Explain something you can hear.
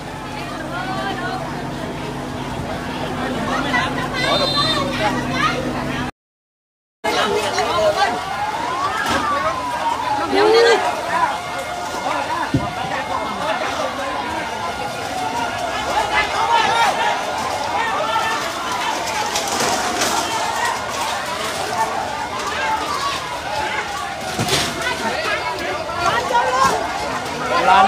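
A crowd of people shouts and talks excitedly nearby.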